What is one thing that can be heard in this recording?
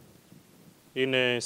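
A man sings out through a microphone, echoing in a large hall.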